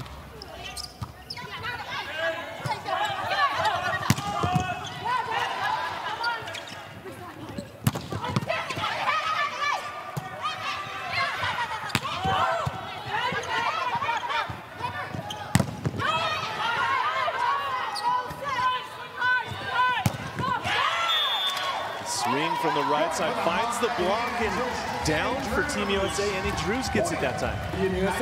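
A crowd cheers in a large echoing hall.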